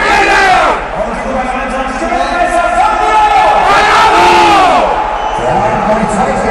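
A large crowd chants and cheers loudly in a big echoing arena.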